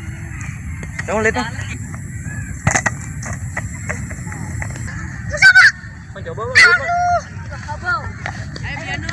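Young boys shout and call out to each other outdoors.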